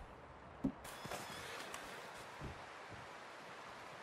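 A horse's hooves thud on snowy ground as it bucks.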